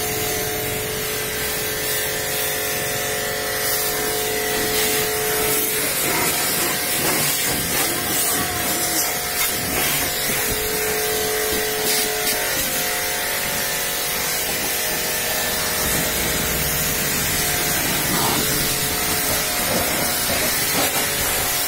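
A pressure washer sprays water in a steady loud hiss.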